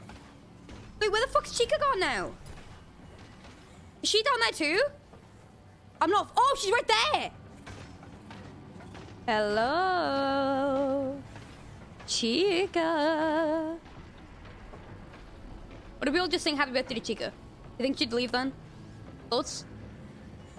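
A young woman talks in bursts with animation into a close microphone.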